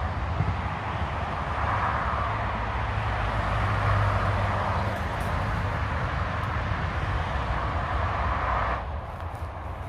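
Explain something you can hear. Wind blows through the trees outdoors.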